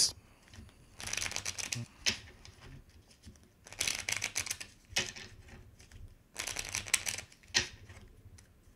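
Playing cards rustle and flutter as they are shuffled by hand.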